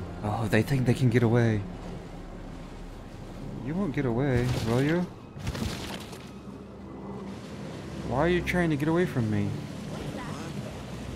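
Water splashes softly as a swimmer paddles through it.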